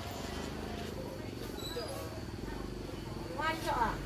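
A motor scooter rides past.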